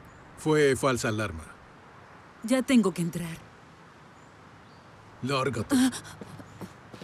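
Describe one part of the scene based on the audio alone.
A middle-aged man talks nearby outdoors.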